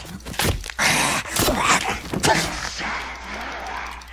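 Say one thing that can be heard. Heavy blows thud as a club strikes a creature.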